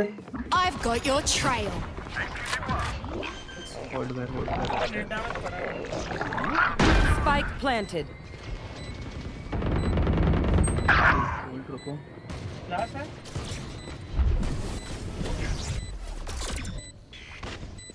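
A game rifle fires in bursts.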